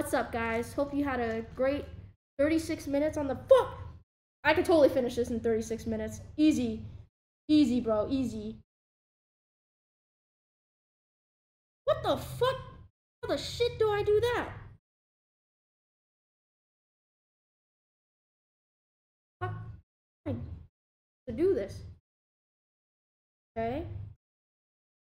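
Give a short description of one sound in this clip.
A young woman talks casually and close to a microphone, in bursts with pauses.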